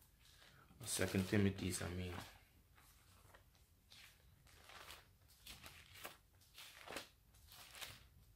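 Paper pages rustle as a man turns them.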